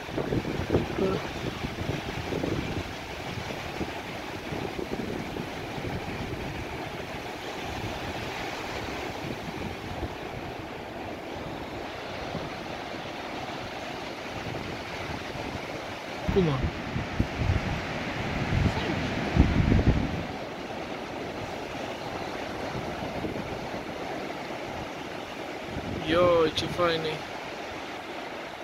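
Waves break and wash steadily onto a sandy shore.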